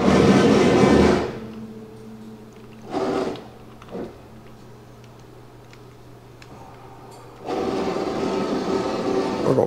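A plasma cutter hisses and roars loudly in bursts as it cuts through steel.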